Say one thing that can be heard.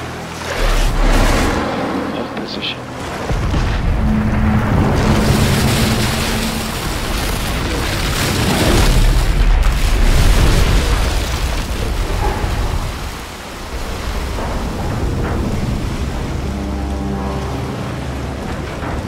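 Water surges and splashes heavily.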